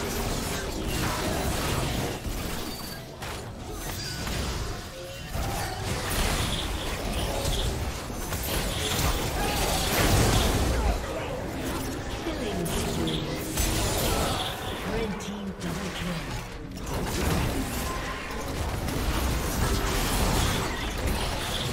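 Magic spells whoosh and clash in a fast fight.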